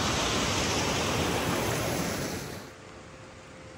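Wind rustles through tree leaves outdoors.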